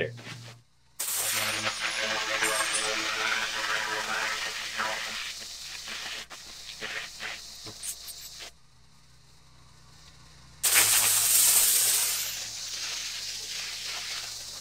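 A pressure washer sprays water onto concrete with a loud hiss.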